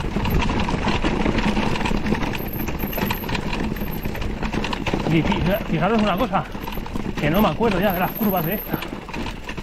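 Mountain bike tyres crunch and clatter over loose rock.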